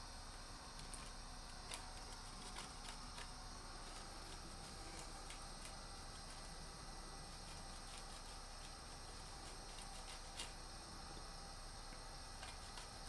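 Food scrapes against a metal grater in quick rasping strokes.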